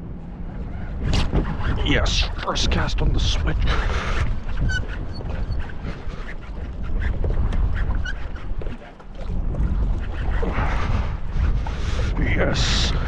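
Small waves lap and splash against a boat.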